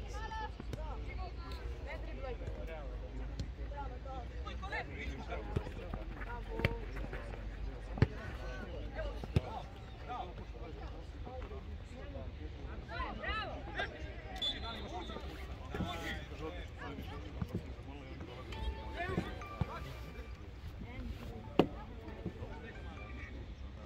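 Young players shout and call out across an open pitch.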